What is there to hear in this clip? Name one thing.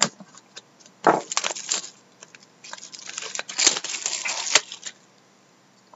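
Plastic wrapping crinkles as hands tear it off.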